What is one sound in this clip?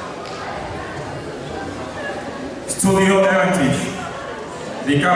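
An audience murmurs quietly in a large echoing hall.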